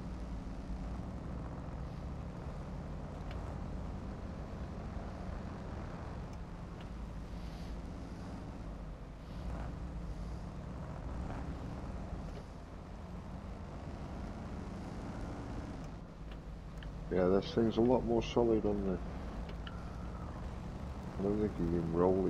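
Tyres crunch over snow and ice.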